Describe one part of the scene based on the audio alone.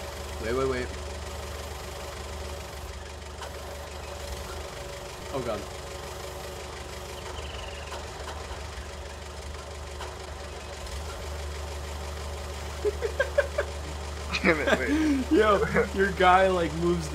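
A forklift engine idles with a steady low hum.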